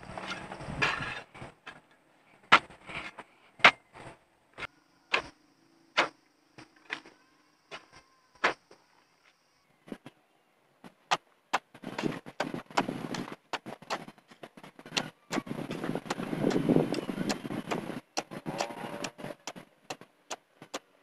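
A hoe chops into soft soil again and again.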